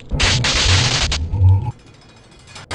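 Electricity crackles and buzzes loudly.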